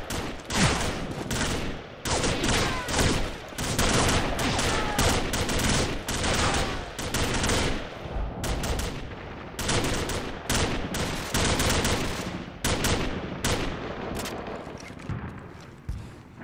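A handgun fires single sharp shots.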